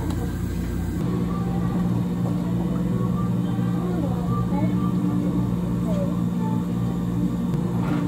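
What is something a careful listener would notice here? Liquid pours into a plastic blender jar.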